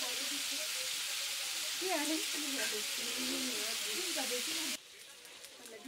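Meat sizzles loudly in hot fat in a pan.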